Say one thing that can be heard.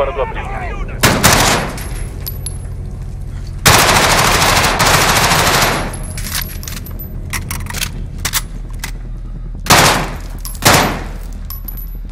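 A rifle fires loud, rapid bursts of shots.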